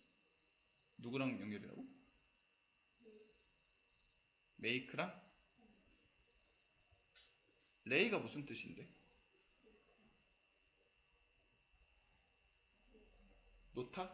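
A young man speaks calmly into a close microphone, in short bursts with pauses.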